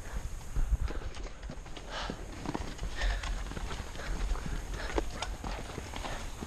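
A man breathes heavily close by.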